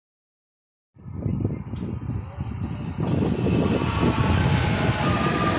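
An electric train approaches and rumbles past close by, growing louder.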